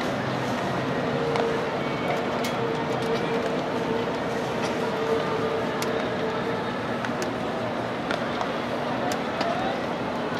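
A crowd murmurs steadily across a large open stadium.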